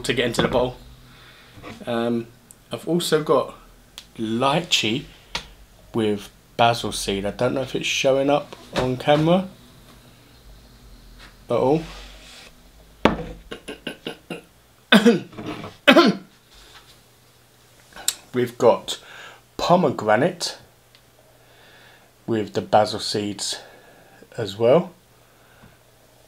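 A middle-aged man talks calmly and close by, in bursts with pauses.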